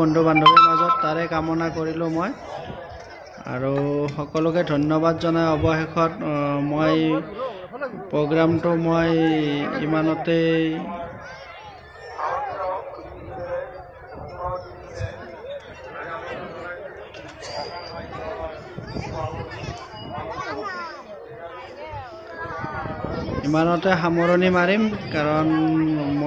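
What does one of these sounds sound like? A large crowd of men, women and children chatters outdoors.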